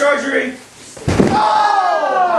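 A body slams down hard with a heavy thud.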